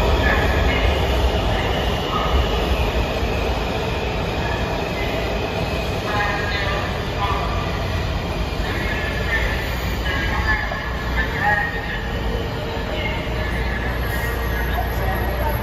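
A subway train rumbles into an echoing station and slows to a stop.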